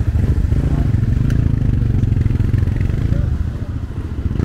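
A vehicle engine rumbles nearby.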